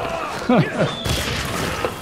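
A fireball bursts with a fiery whoosh.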